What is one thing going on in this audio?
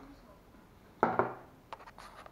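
A plastic device is set down on a table with a knock.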